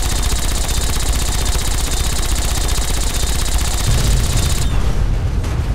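A laser beam hums and crackles loudly.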